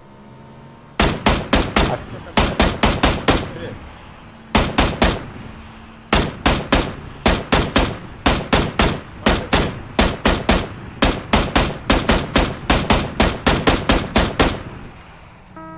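A rifle fires rapid bursts of sharp shots.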